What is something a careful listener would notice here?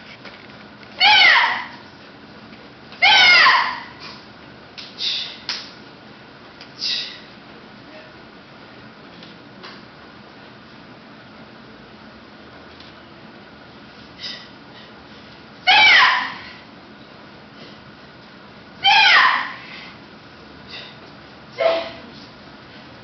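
A young woman shouts sharply in short bursts.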